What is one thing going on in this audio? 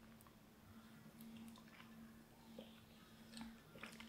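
A woman sips a drink through a straw.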